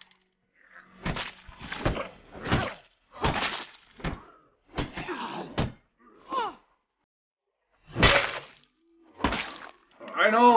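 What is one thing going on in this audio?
Heavy punches thud again and again.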